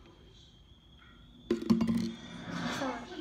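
A plastic bottle crackles in hands.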